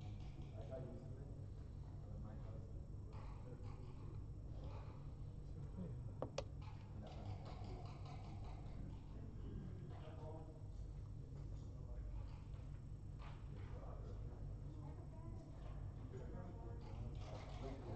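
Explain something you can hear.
Backgammon checkers click against the board as they are moved.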